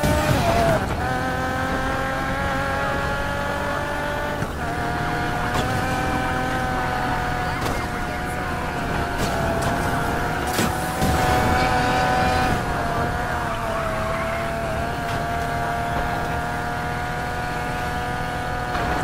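A sports car engine roars at high revs.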